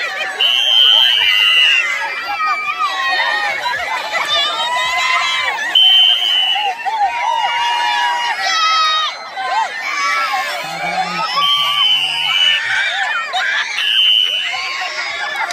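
A crowd of children and adults shouts and cheers excitedly outdoors.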